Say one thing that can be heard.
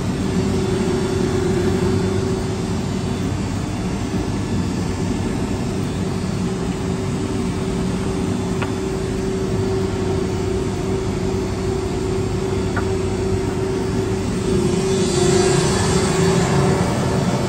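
A large electric fan hums and whirs steadily.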